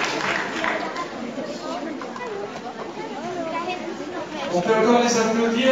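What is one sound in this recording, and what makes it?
A large choir of young voices sings together in a large echoing hall.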